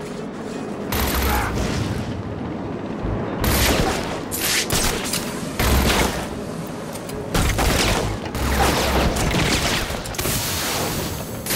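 Wind rushes past a flapping cape.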